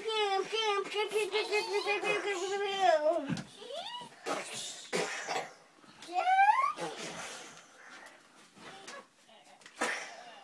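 A child sings and shouts playfully close by.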